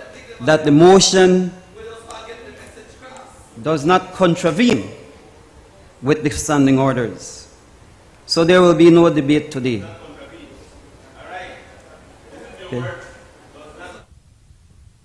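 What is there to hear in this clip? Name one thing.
A middle-aged man speaks slowly into a microphone, with pauses.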